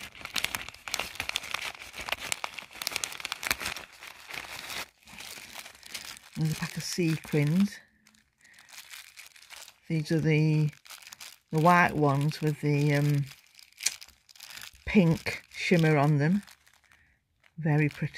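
A plastic bag crinkles and rustles between fingers.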